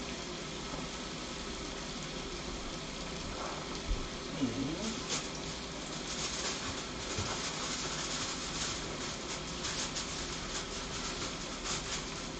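Food sizzles and crackles in a frying pan.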